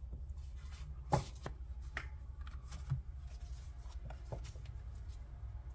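Playing cards rustle and tap as a hand gathers them up.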